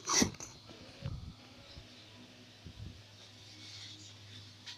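An acoustic guitar is strummed softly, close by.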